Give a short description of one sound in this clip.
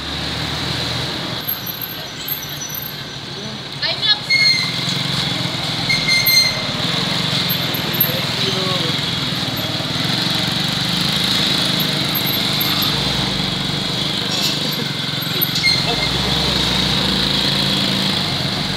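A small dirt-style motorcycle engine hums, cruising at low speed.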